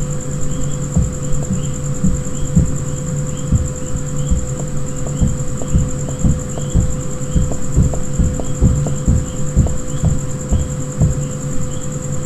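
Footsteps thud on a hard floor at a walking pace.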